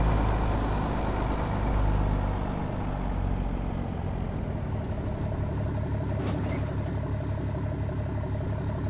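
A truck engine hums steadily at low speed.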